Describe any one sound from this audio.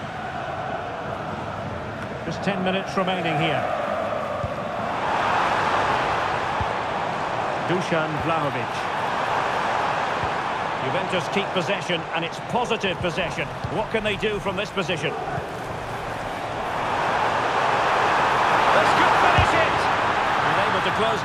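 A large stadium crowd roars steadily, swelling louder at times.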